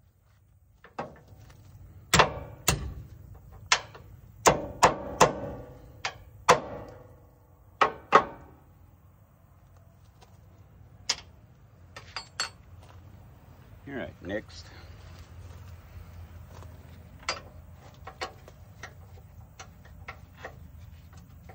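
Metal parts clank and knock sharply.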